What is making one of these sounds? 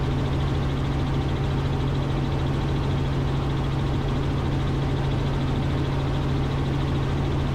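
A helicopter's engine and rotor drone loudly and steadily from inside the cabin.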